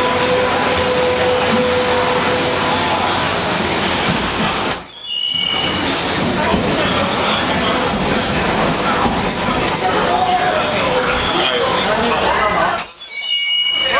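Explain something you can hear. A subway train rumbles into an echoing station and slows down.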